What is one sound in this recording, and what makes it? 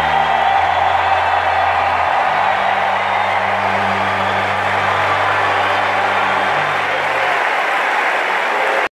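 A large crowd roars and cheers in a big echoing arena.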